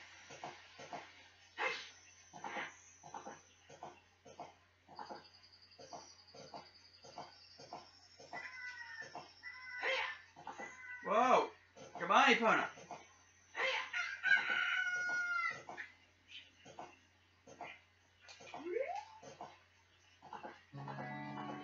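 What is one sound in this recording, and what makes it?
Horse hooves clop in a steady quick rhythm.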